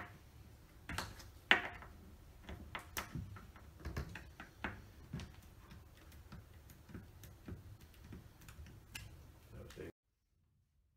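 A hand tool clicks and taps as it presses a rubber gasket into the edge of a glass panel.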